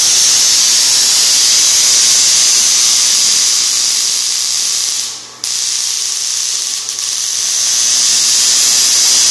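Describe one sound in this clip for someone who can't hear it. A high-voltage coil hisses and crackles loudly with a steady electric buzz, briefly cutting out once.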